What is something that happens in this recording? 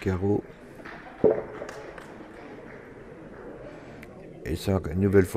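A small crowd murmurs quietly in a large echoing hall.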